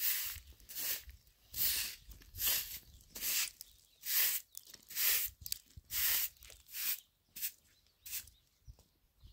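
A broom sweeps dusty ground in brisk, regular strokes.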